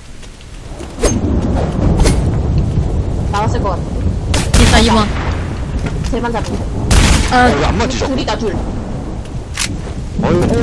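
A sniper rifle fires loud single shots.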